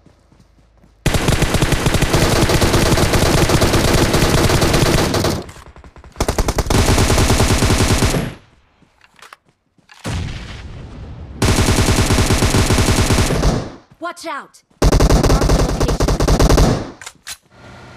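An automatic rifle fires in long, rapid bursts.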